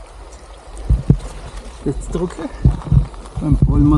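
Water splashes under a rolling wheel.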